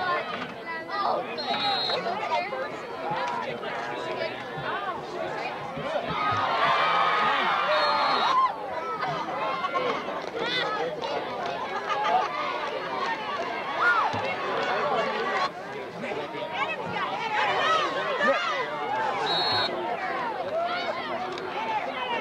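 A crowd in outdoor stands cheers and shouts.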